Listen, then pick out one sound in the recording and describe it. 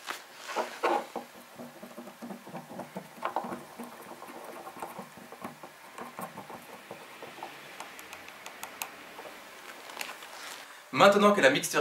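A wooden stick scrapes and taps inside a small ceramic cup.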